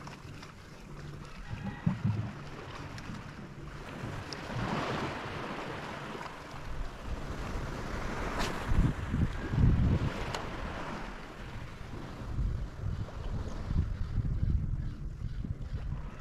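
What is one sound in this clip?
Wind gusts across open water, rumbling and buffeting in bursts.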